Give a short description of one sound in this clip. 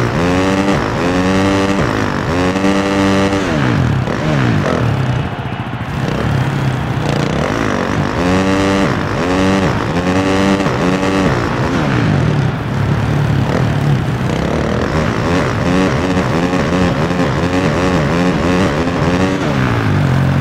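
A dirt bike engine revs up and down as it races.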